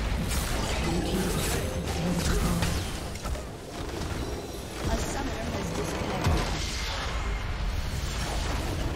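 Magic spells whoosh and crackle in a fast battle.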